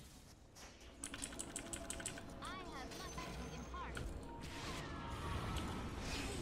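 Video game spell effects whoosh, zap and crackle in quick bursts.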